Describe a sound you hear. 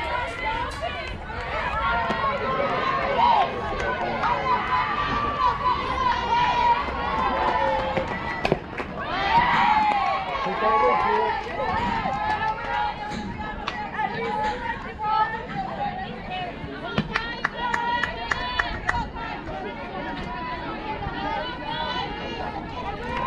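Spectators nearby cheer and call out outdoors.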